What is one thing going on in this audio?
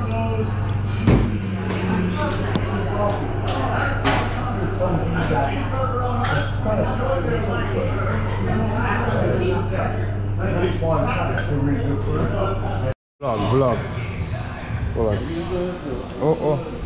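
A crowd chatters loudly all around in a busy room.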